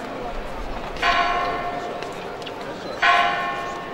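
A church bell rings loudly, each stroke slowly fading.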